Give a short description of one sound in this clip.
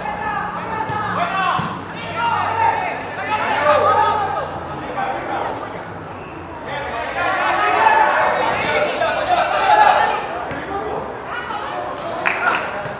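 A football is kicked on a grass field.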